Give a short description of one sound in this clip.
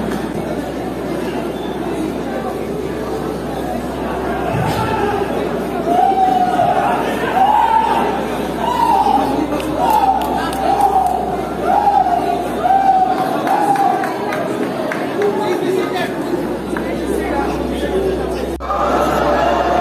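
A large crowd shouts in an echoing hall.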